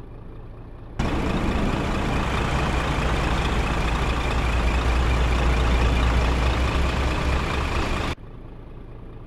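Heavy trucks roar loudly past on a road.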